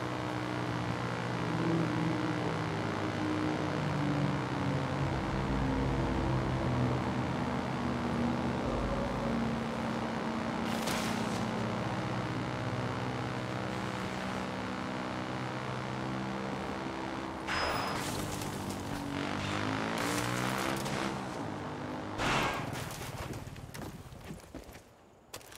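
A motorbike engine drones steadily and rises and falls in pitch.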